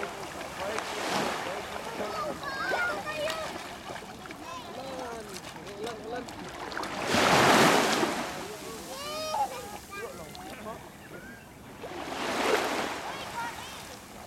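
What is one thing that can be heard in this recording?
Water splashes as children wade and play.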